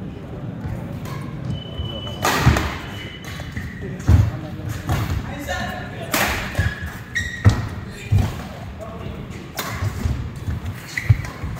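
Shoes squeak on a sports floor.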